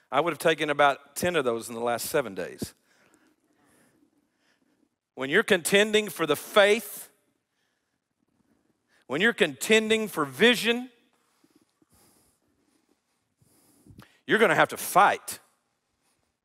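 An older man speaks with animation through a headset microphone, in bursts with pauses.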